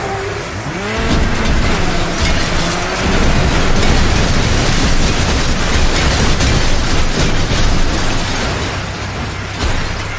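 Metal crashes and crunches as vehicles collide.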